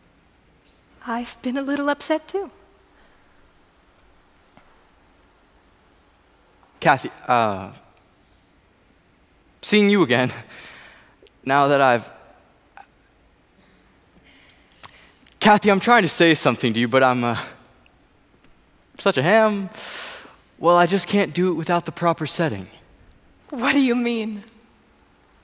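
A young woman speaks and laughs in reply.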